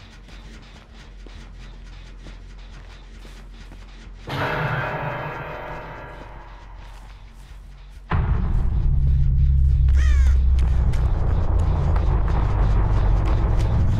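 Footsteps run quickly over grass and gravel.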